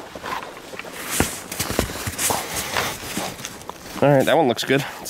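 Snow is brushed off a car with a gloved hand, scraping and swishing.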